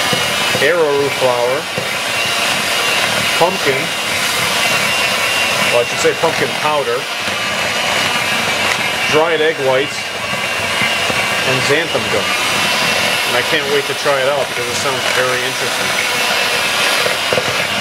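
An electric hand mixer whirs steadily, beating a thick, crumbly dough.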